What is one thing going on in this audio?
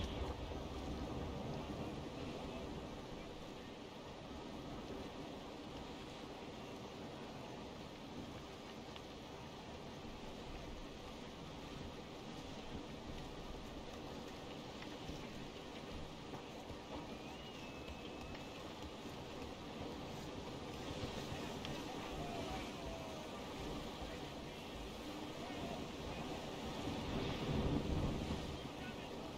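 Waves splash and rush against a ship's hull.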